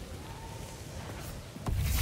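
Electric magic crackles and hums.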